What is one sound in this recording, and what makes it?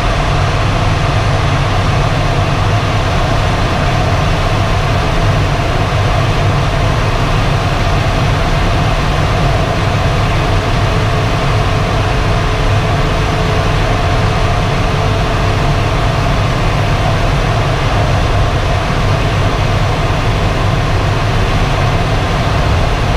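Air rushes steadily and loudly past a glider's canopy in flight.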